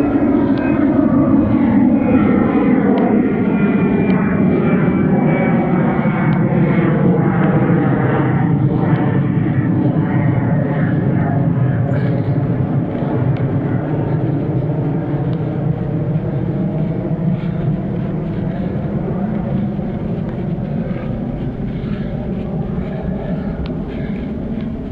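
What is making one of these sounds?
A motorbike engine hums steadily and shifts in pitch while riding.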